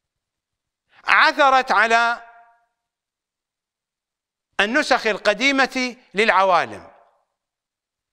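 A middle-aged man speaks forcefully into a close microphone, in two short bursts.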